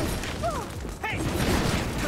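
Fire bursts and roars in blasts.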